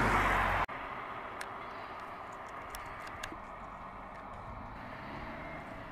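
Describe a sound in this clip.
A car drives away down the road.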